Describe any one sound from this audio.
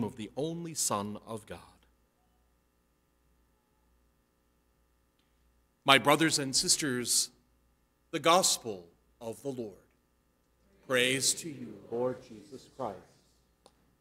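An older man chants and speaks through a microphone.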